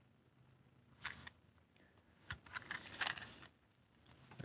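Plastic parts of a toy click softly as they are handled.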